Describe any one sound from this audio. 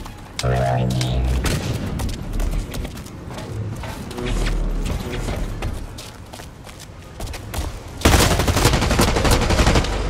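Rifle gunfire rattles in short bursts.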